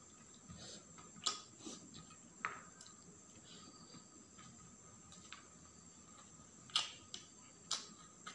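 A young man chews food with wet, smacking sounds close to a microphone.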